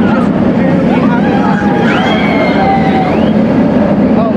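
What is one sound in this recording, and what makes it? Riders scream on a roller coaster.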